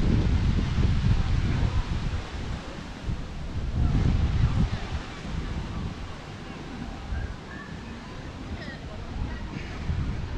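Wind gusts rumble outdoors, strongest at first.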